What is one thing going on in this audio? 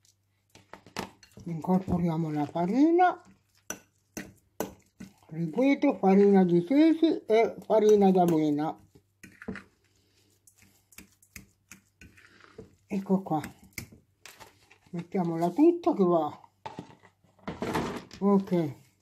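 A fork scrapes and clinks against a glass bowl while mixing.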